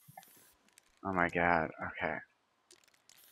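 A young man speaks briefly into a nearby microphone.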